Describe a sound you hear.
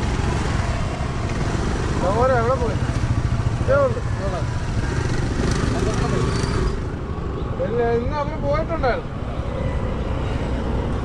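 Scooter engines idle and hum close by.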